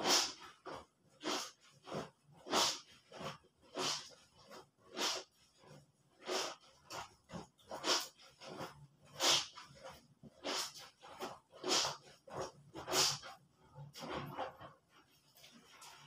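Wet clothes slosh and splash in a basin of water, in rhythmic scrubbing strokes.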